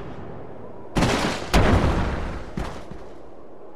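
A heavy body crashes hard onto the ground.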